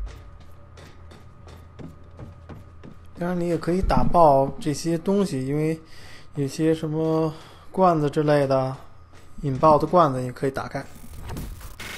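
Footsteps run across a metal floor.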